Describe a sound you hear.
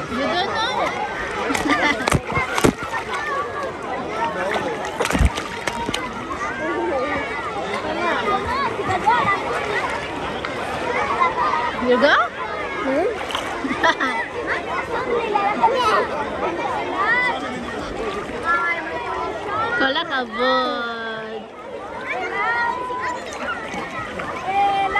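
Many children and adults chatter and shout across an outdoor pool.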